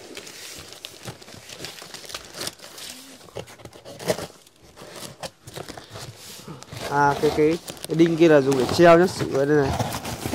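Paper wrapping rustles and crinkles as hands handle a large print.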